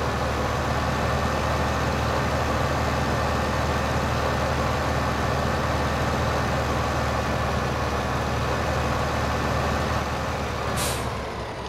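A tractor engine drones steadily as the tractor drives along.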